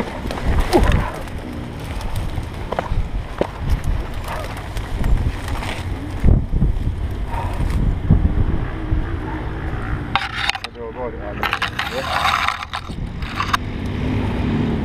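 A dirt bike engine idles roughly close by.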